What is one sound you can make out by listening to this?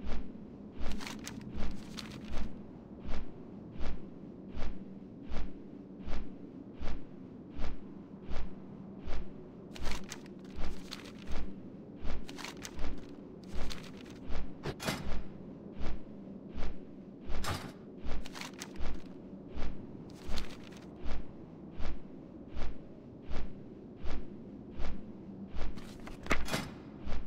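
A winged mount flaps its wings in a steady, even rhythm.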